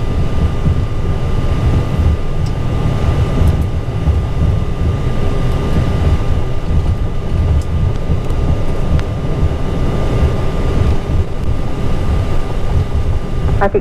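Jet engines roar steadily as an airliner rolls along a runway.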